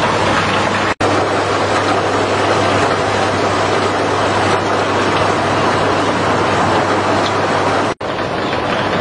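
An electric pump motor hums steadily.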